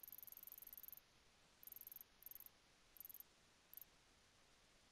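Menu sounds tick as a cursor scrolls through a list.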